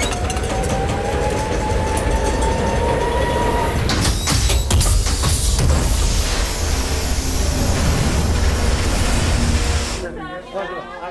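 Smoke blasts out of a machine with a loud, roaring hiss.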